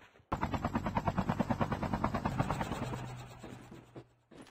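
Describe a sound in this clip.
A helicopter's rotor thuds loudly.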